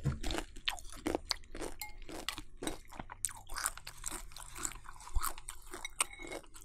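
A spoon scrapes and clinks against a glass bowl.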